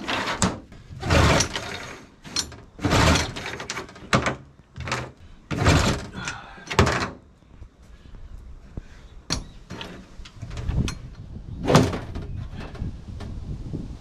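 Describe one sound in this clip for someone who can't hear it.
Feet thump on a hollow metal boat hull.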